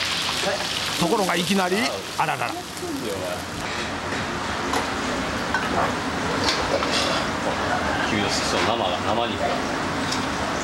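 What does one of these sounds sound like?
A man speaks sharply, scolding.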